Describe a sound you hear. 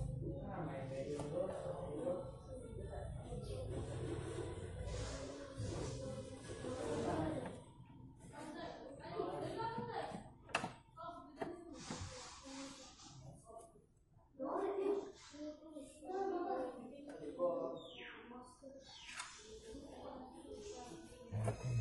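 Cardboard scrapes and rustles as hands handle a box.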